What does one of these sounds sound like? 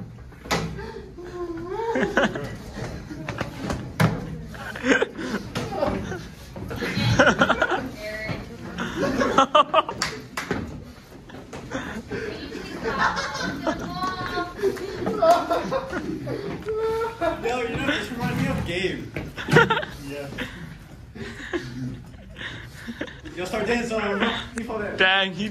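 Men laugh close by.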